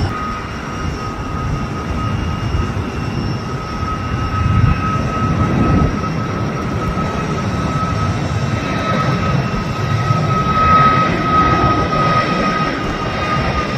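A jet airliner's engines roar steadily in the distance.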